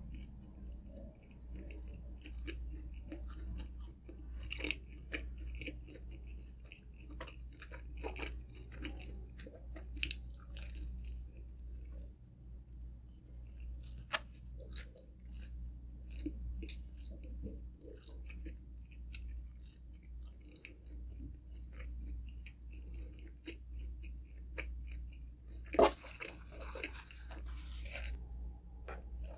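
A young woman chews food with loud, wet smacking sounds close to a microphone.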